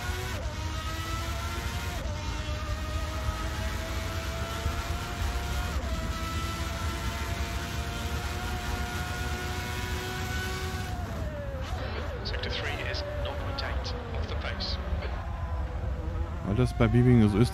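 A racing car engine roars, rising in pitch as it speeds up and dropping as it slows.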